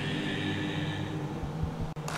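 A group of men sings together in harmony in a large hall.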